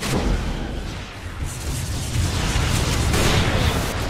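Combat hits thud and clash.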